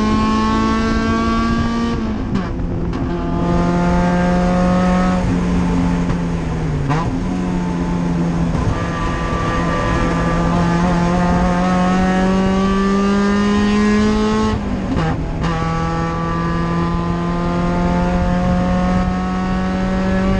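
A race car engine roars loudly from inside the cabin, rising in pitch and dropping with each gear change.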